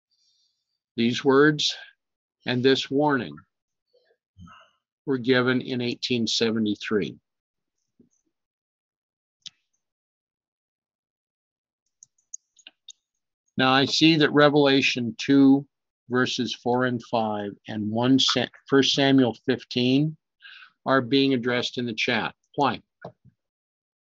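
A middle-aged man speaks calmly and closely into a microphone, with long pauses.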